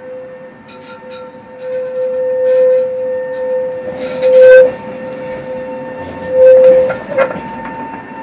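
Tram wheels squeal loudly on a curve of track.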